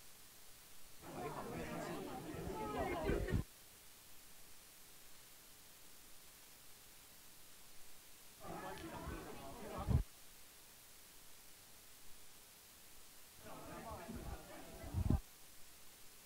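A man speaks with animation in short bursts in a room.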